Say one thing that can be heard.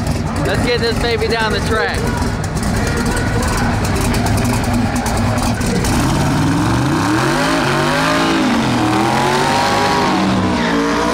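A powerful race car engine rumbles and crackles loudly up close.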